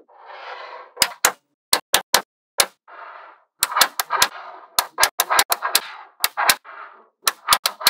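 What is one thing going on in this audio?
Small metal balls click sharply together as they snap into place.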